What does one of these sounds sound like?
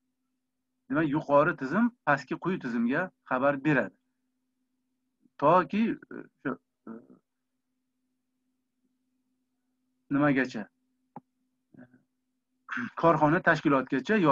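A middle-aged man speaks calmly through an online call microphone, in bursts with pauses.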